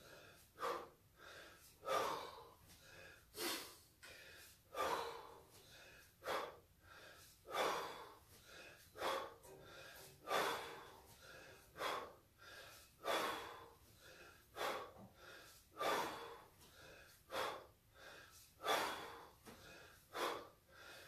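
A man exhales forcefully in a steady rhythm.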